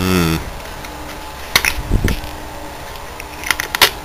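A rubber cap clicks as it is pulled off.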